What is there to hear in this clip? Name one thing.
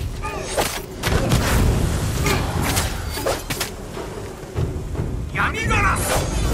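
Heavy low thuds of blows land.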